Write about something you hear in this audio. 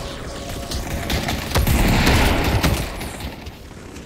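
A loud rushing blast roars.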